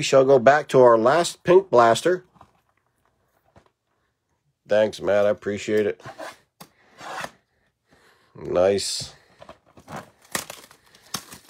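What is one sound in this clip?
Hands turn and tap a small cardboard box.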